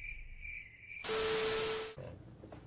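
Static hisses loudly with a steady tone.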